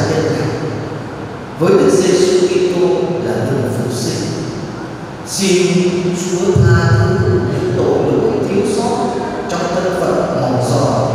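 A man speaks into a microphone, preaching with a steady, earnest voice in a large echoing hall.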